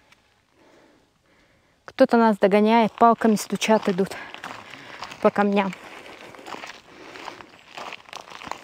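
Footsteps crunch on a gravel path.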